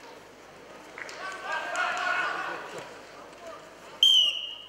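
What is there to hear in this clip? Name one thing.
A crowd cheers loudly in a large hall.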